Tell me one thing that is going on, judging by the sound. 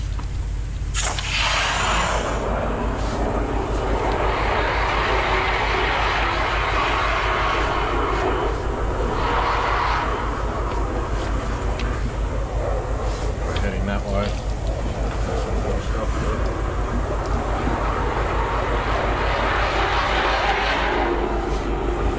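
A spinning metal cable rattles and scrapes inside a drainpipe.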